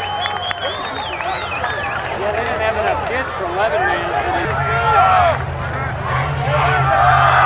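Young men shout and cheer close by, outdoors.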